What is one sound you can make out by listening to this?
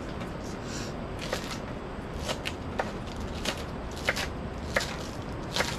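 A knife chops green onions on a wooden cutting board with sharp taps.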